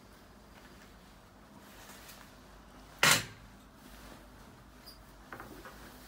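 Bedding rustles as a blanket is pulled back.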